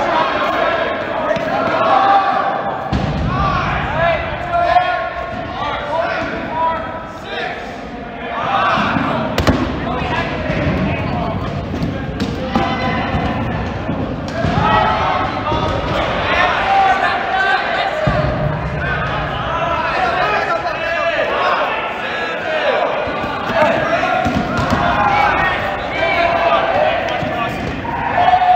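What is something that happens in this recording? Rubber balls thump against the floor and the players.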